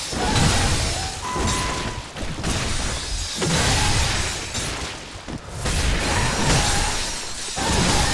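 Blades slash and strike flesh in a fight.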